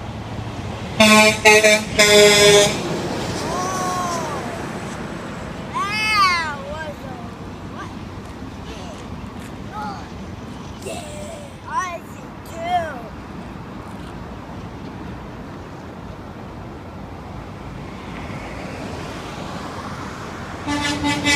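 A truck's air horn blasts loudly several times.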